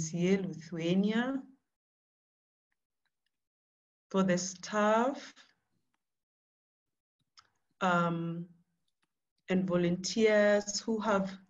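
A woman speaks calmly with pauses, heard close through an online call microphone.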